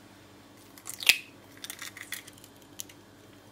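An egg is cracked into a glass bowl.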